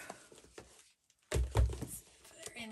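A hand sets a card down on a mat with a soft tap.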